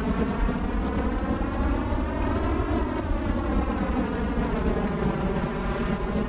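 A jet engine roars steadily as a jet plane speeds along a runway.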